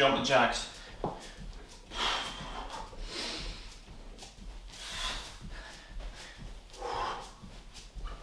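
Feet thump lightly on a mat in a quick rhythm.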